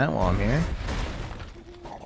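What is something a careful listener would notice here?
A magical blast crackles and whooshes.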